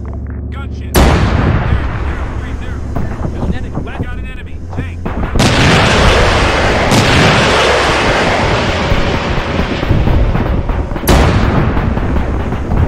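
Heavy explosions boom and rumble close by.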